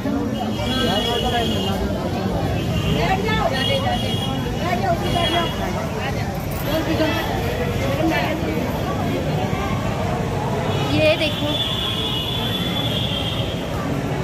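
A crowd of men and women chatter close by in a large echoing hall.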